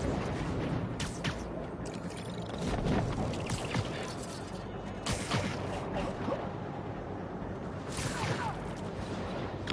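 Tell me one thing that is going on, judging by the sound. Air whooshes past in quick gusts during a swing.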